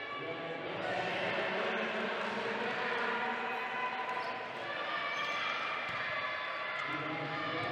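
Wheelchair wheels roll and squeak on a hard floor in a large echoing hall.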